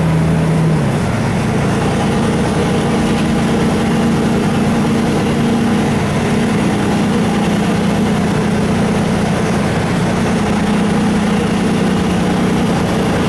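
A bus interior rattles and rumbles over the road.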